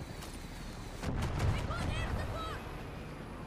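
A helicopter explodes in a loud boom in the sky.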